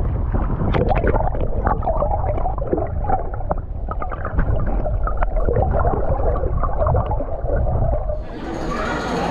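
Water gurgles and bubbles, muffled underwater.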